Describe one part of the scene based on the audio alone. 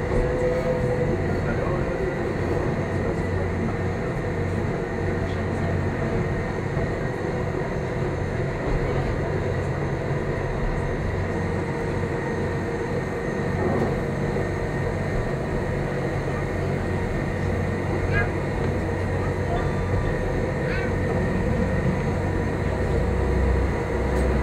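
A train rumbles and hums steadily along its track.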